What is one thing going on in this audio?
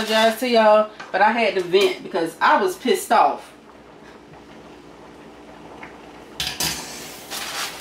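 A wooden spoon stirs vegetables in a pot.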